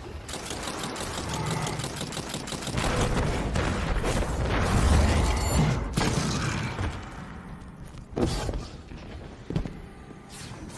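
Weapon blasts and explosions boom and rumble loudly, then die down.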